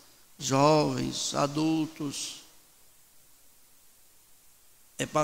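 A middle-aged man preaches with animation into a microphone.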